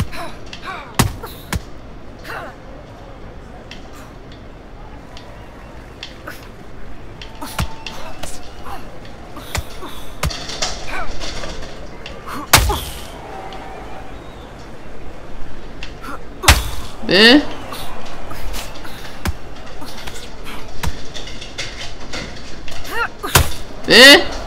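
Boxing gloves thud against a body in sharp, scattered blows.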